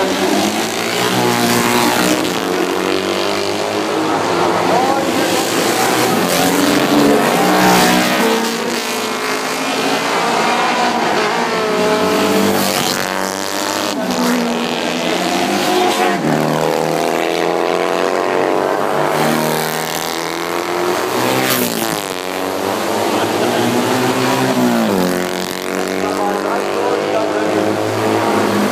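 Racing motorcycle engines roar and rev up and down as they speed past.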